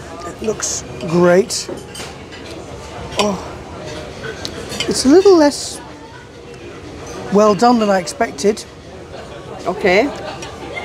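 A knife scrapes against a plate as a man cuts meat.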